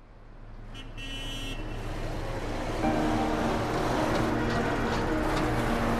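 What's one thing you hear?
Car traffic hums and rumbles along a busy street.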